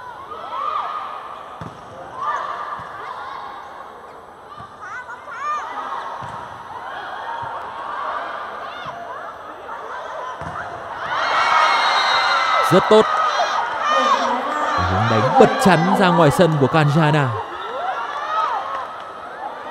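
A large crowd cheers and chants in a big echoing arena.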